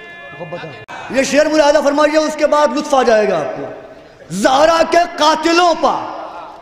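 A young man chants loudly and passionately through a microphone.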